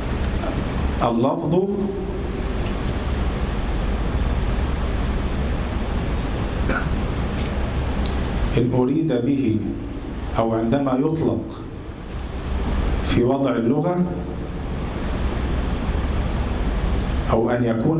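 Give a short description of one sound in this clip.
A middle-aged man speaks slowly and calmly into a microphone, with pauses.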